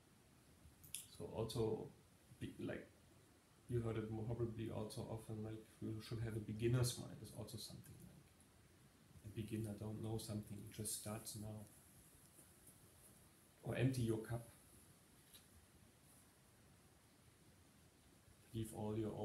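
A man speaks calmly and with animation, close by.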